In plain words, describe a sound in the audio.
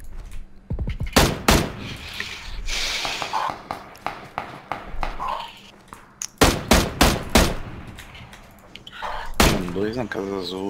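A submachine gun fires in short, loud bursts.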